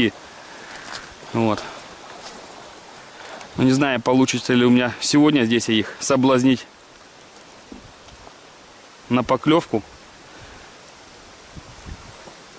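A river flows gently nearby.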